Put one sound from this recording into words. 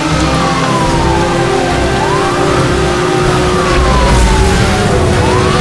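A police siren wails up and down steadily.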